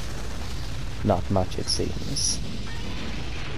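An explosion bursts with a rumbling boom.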